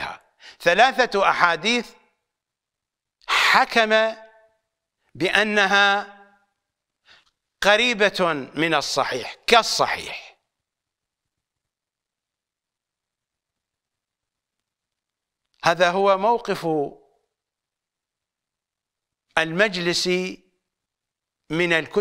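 An elderly man speaks with animation into a close microphone, in bursts with long pauses.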